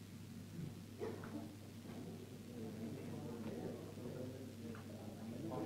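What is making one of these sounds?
Men and women chat in murmured voices nearby.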